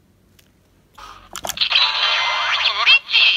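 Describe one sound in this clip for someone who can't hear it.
A toy medal watch plays loud electronic music and sound effects.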